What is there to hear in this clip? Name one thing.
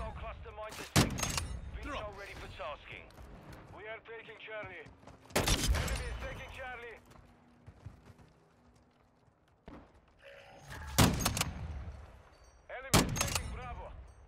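A rifle fires loud, sharp shots with a ringing echo.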